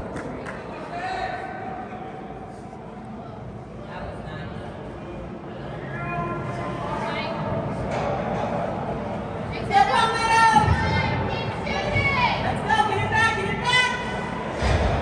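Young men shout and call out across the rink.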